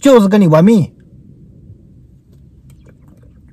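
A young man drinks from a plastic water bottle.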